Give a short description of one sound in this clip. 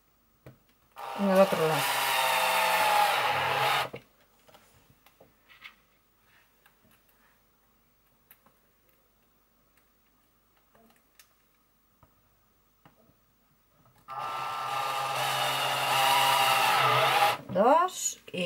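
A cordless drill whirs steadily as it drives screws into wood.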